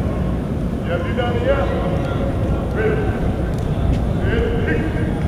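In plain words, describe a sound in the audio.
A man calls out loudly in a large echoing hall.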